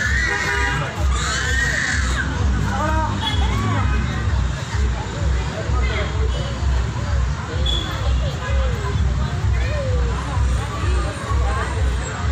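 A crowd of people talks in the background outdoors.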